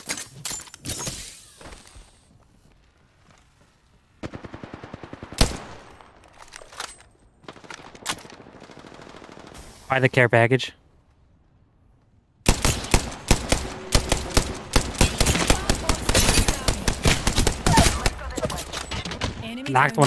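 Rapid gunfire bursts crackle loudly.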